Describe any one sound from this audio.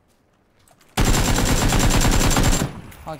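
A rifle fires a rapid, loud burst of shots close by.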